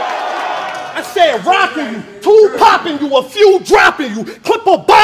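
A man raps forcefully at close range.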